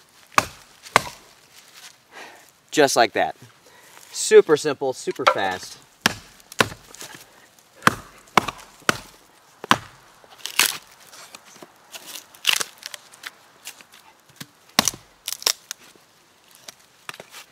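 A hatchet chops and splits dry wood with sharp knocks.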